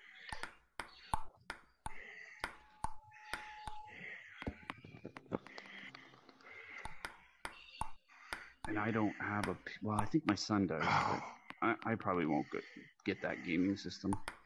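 A ping-pong ball clicks back and forth on a table and paddles.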